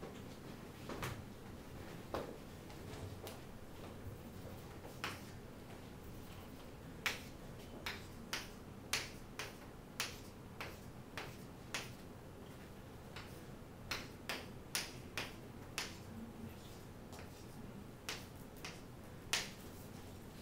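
Chalk taps and clicks sharply against a board.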